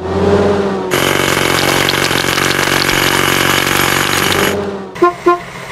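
A hydraulic hammer pounds rapidly on rock.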